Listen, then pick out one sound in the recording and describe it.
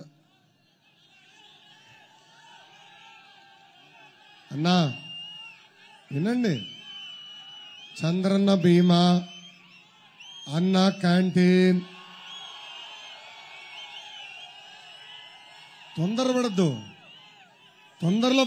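A large crowd cheers and whistles outdoors.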